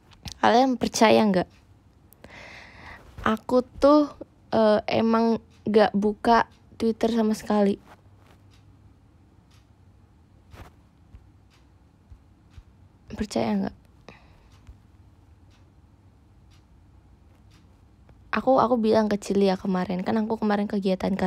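A young woman speaks brightly and close by, in short bursts with pauses.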